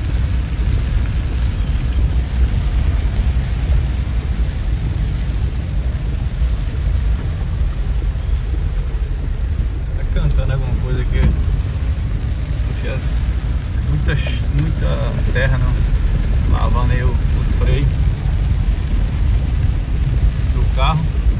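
A car engine rumbles low while driving.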